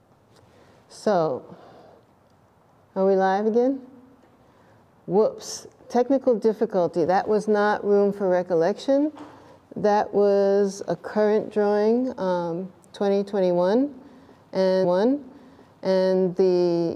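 A middle-aged woman speaks calmly and thoughtfully, close to a microphone.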